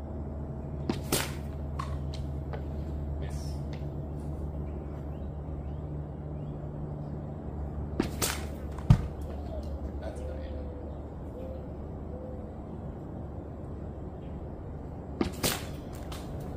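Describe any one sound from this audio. A thrown axe thuds into a wooden target a short distance away.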